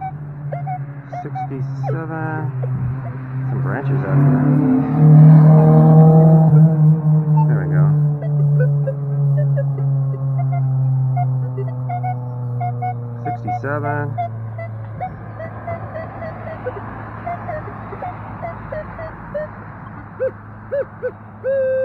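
A metal detector gives short high beeps.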